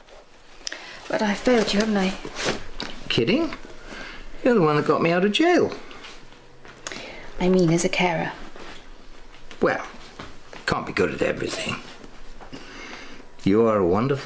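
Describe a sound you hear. A young woman talks softly, close by.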